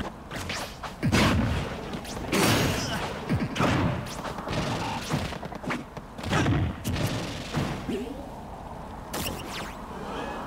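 Video game fighting sound effects hit and whoosh.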